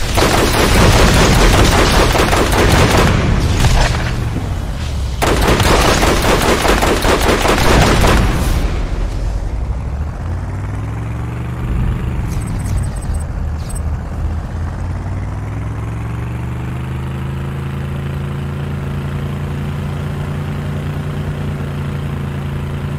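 A vehicle engine hums and revs up and down.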